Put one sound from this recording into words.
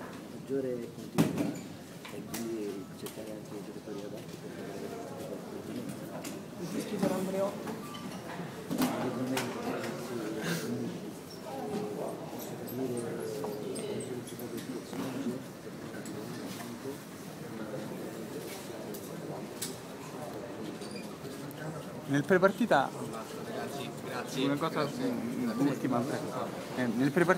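A middle-aged man speaks calmly into microphones close by.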